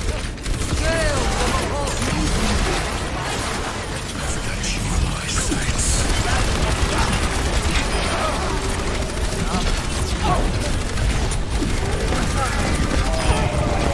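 Rapid energy weapon fire hums and zaps continuously.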